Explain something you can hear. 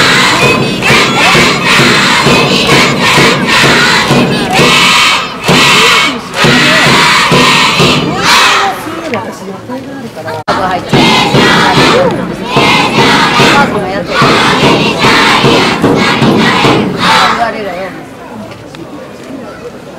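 A large crowd of children and adults chatters and cheers outdoors nearby.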